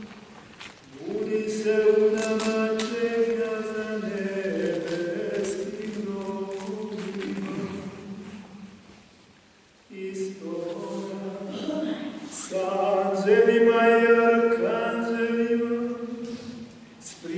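An elderly man chants in a slow, sustained singing voice in a large echoing hall.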